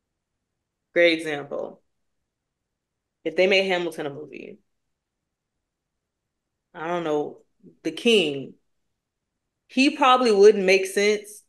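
A woman speaks with animation over an online call, in short bursts.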